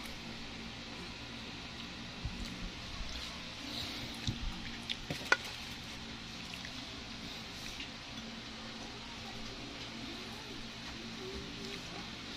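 A hand squishes and mixes rice on a plate.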